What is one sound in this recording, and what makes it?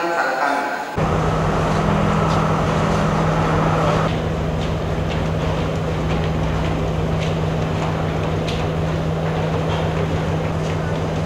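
A large crowd murmurs and chatters.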